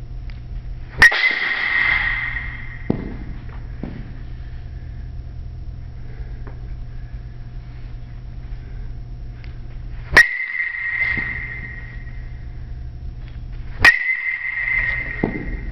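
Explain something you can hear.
A metal bat strikes a ball with a sharp ringing ping that echoes in a large hall.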